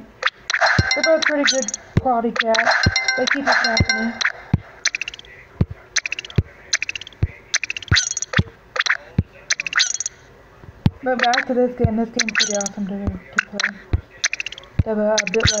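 Short bright electronic blips sound again and again.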